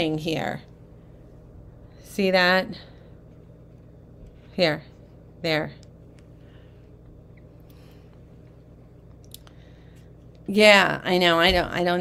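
A middle-aged woman speaks calmly and closely into a microphone, in short bursts.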